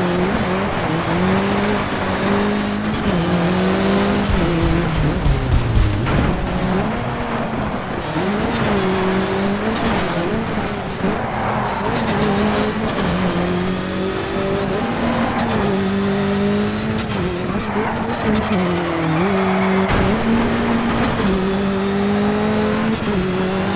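A rally car engine revs hard, rising and falling with gear changes.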